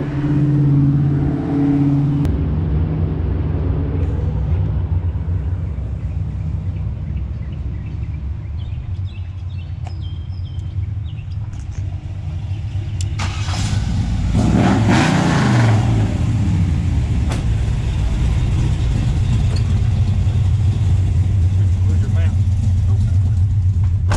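A pickup truck engine idles with a steady low rumble.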